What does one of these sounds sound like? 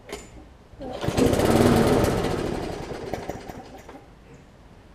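A lawn mower engine sputters briefly and dies.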